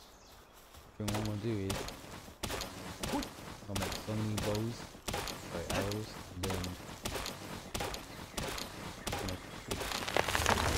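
An axe chops into a tree trunk with repeated sharp thuds.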